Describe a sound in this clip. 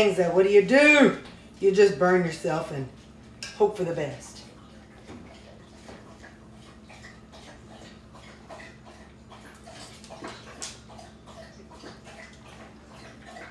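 A spoon scrapes and stirs food in a frying pan.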